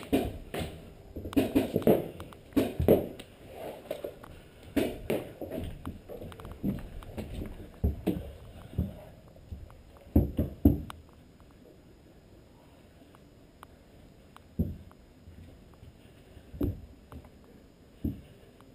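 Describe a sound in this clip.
Footsteps thud on hollow wooden boards.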